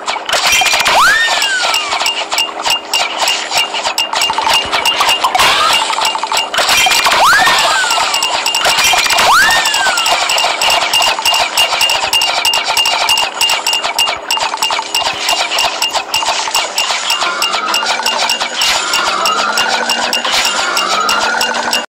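Playful game sound effects whoosh and chime.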